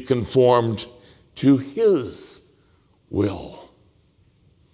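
An older man speaks steadily into a microphone, in short phrases with pauses.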